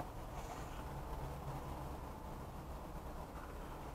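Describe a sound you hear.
A plastic sleeve rustles as hands handle a folder.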